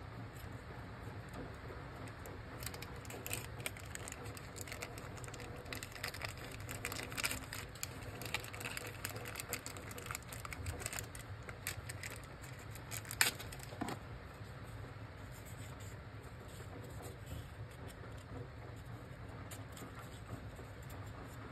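Fingers handle and click small plastic pieces close by.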